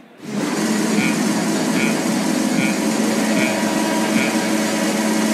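Short electronic beeps sound one after another as start lights come on.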